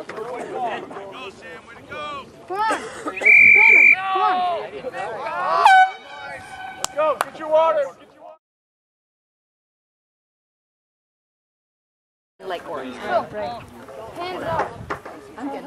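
Young men shout and call out across an open field.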